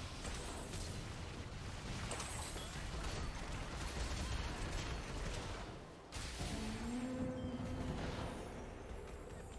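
Game battle effects crash and whoosh in quick bursts.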